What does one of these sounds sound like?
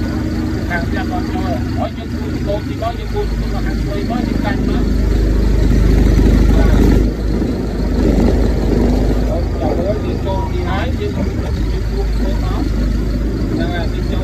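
A forklift engine rumbles steadily and grows louder as it approaches.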